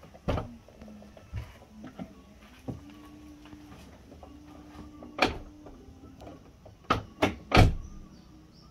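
A car's door locks click sharply several times.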